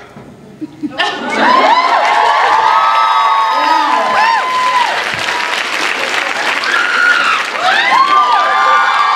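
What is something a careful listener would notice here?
A large crowd cheers and screams with excitement in a large echoing hall.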